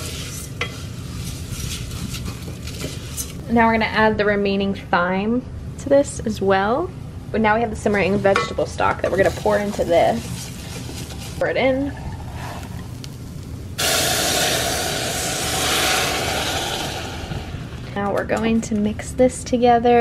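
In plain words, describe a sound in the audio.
A wooden spoon scrapes and stirs dry grains in a metal pan.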